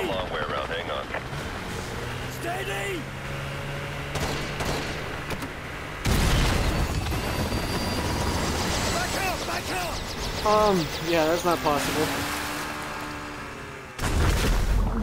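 A motorboat engine roars over rough, splashing water.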